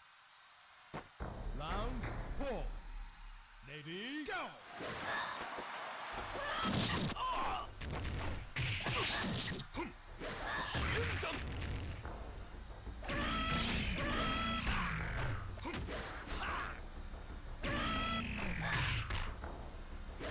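Fighters in a video game land hits with sharp smacks and thuds.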